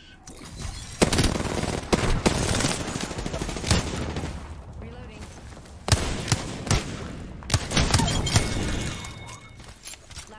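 Rapid gunfire rattles loudly and close by.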